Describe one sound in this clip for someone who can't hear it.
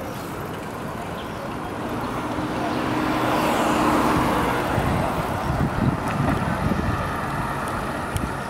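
A bicycle chain clicks and rattles.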